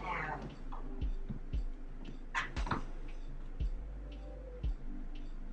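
High heels thud on a hard floor as a woman walks.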